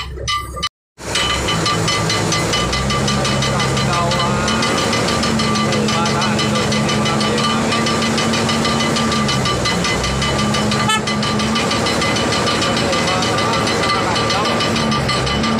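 A crane's engine drones steadily while hoisting a load.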